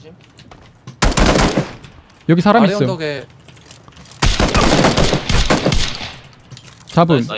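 A rifle fires loudly in short bursts.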